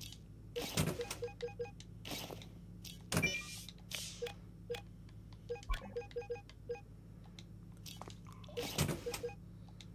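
Short electronic menu blips sound in quick runs.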